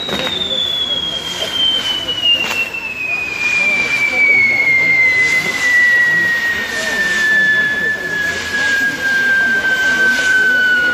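A firework whistles shrilly, its pitch slowly falling.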